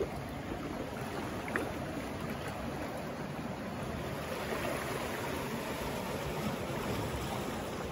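Waves lap gently against rocks.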